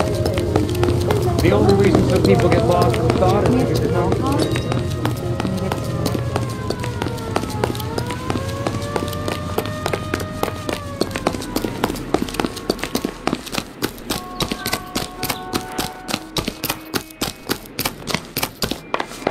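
Footsteps run quickly on hard ground and stone steps.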